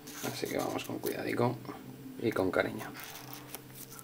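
A small blade scrapes and slits plastic wrap.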